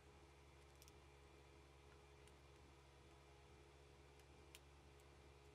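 Fabric rustles as hands handle it.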